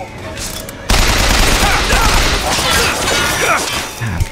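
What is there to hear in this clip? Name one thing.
A gun fires in rapid shots.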